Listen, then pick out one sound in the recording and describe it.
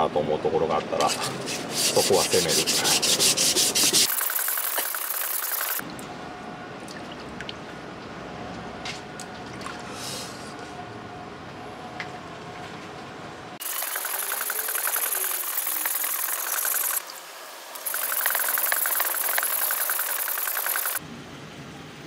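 A steel blade scrapes back and forth over a wet whetstone in quick, even strokes.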